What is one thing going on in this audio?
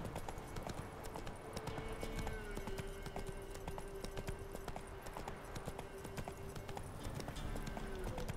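Horse hooves thud rhythmically on a dirt path.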